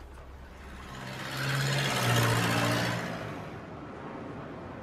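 A car drives past outdoors.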